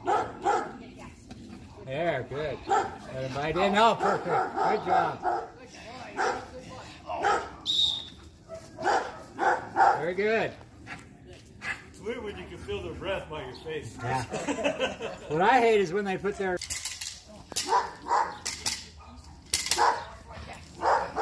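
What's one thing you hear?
An older man shouts commands to a dog outdoors.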